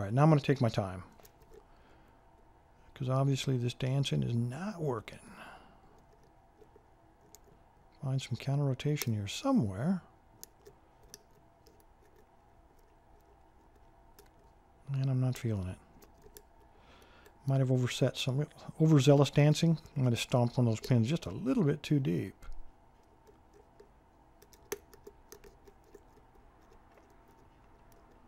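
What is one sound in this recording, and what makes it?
Metal picks scrape and click softly inside a lock.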